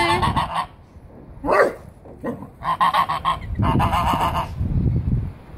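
Geese honk loudly in rapid bursts.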